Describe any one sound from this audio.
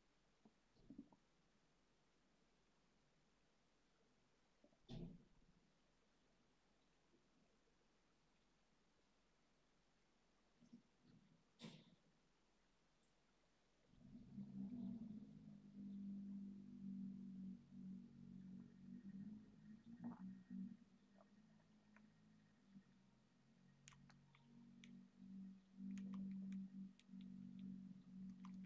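Keys click softly on a computer keyboard.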